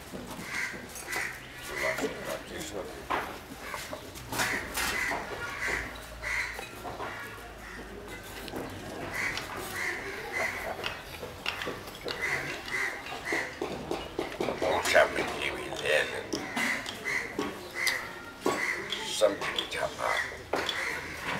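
An elderly man speaks slowly and calmly into a close microphone.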